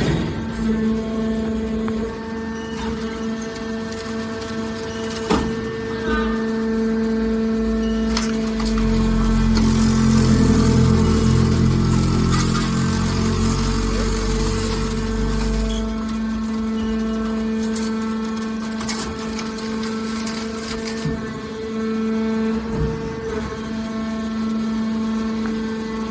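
A hydraulic machine hums steadily.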